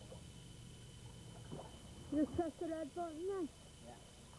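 Water splashes as a man swims.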